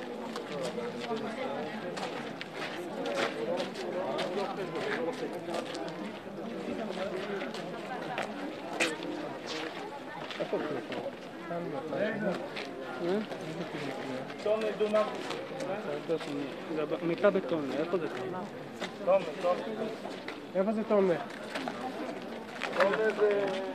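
A crowd of men talk and murmur outdoors all around.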